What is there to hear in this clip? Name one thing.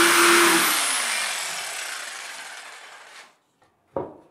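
A power saw motor winds down and fades.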